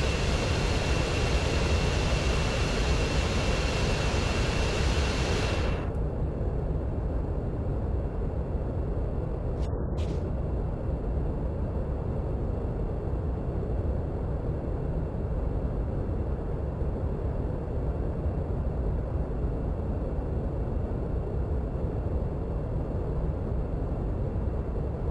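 A jet engine rumbles steadily.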